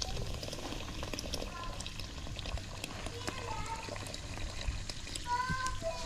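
Thick liquid pours and splashes into a pot.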